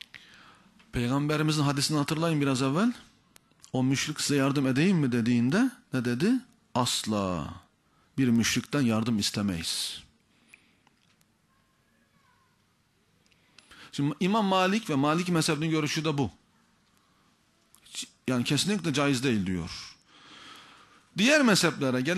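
A man speaks forcefully into a microphone, in bursts with pauses, in an echoing hall.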